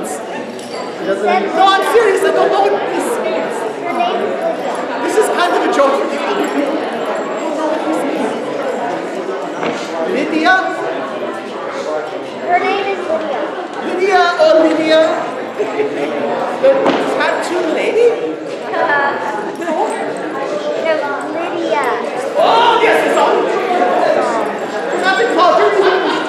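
A man speaks with animation to an audience.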